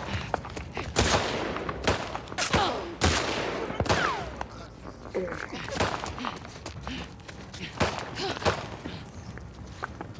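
Gunshots crack sharply several times.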